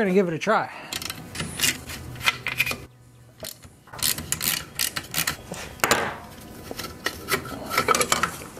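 Plastic engine parts click and rattle under hands.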